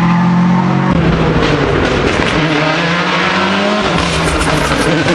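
A second rally car engine screams as it approaches at speed.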